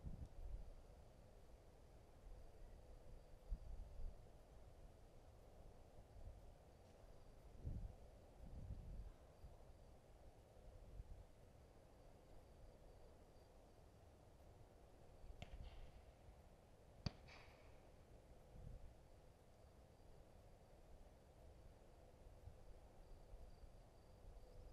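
Wind gusts across an open field outdoors.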